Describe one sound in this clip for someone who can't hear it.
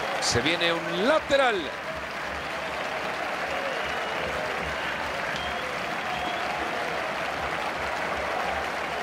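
A stadium crowd murmurs in a football video game.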